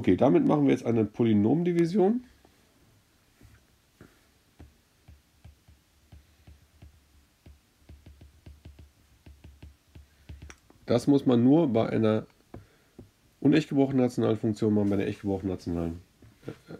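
A stylus taps and scratches lightly on a tablet.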